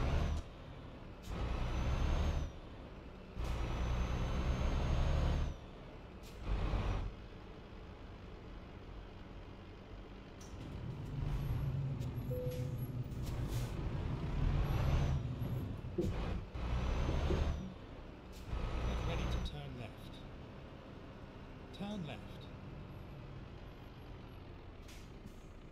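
A truck engine rumbles at low speed.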